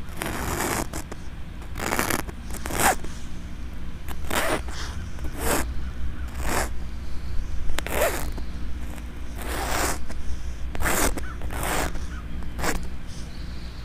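Chalk scrapes and scratches across a rough surface in short strokes.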